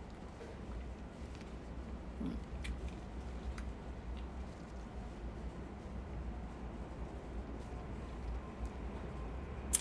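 A young woman chews and sucks on food close by.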